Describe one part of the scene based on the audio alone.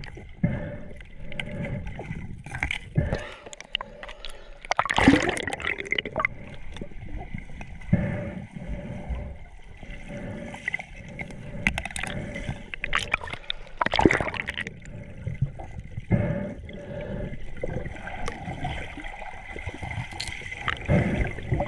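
Water swirls and bubbles in a muffled way underwater.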